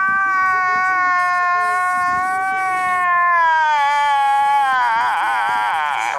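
A man wails loudly in a long, drawn-out cry that slowly falls and then wavers.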